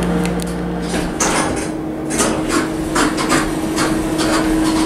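Elevator doors slide open with a rumble.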